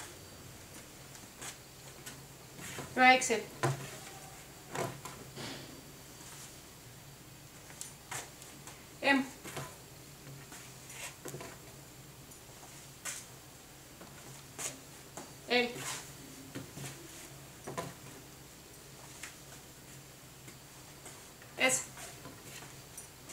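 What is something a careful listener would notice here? Fabric rustles and swishes as clothes are handled and laid down on a table.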